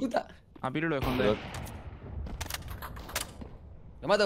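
Gunshots fire in short sharp bursts.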